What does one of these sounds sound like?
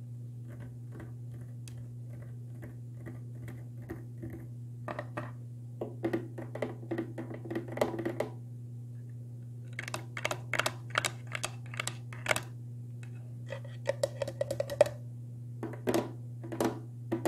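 Fingers tap and knock on a glass tank.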